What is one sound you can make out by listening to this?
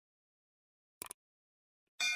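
A mouse button clicks once.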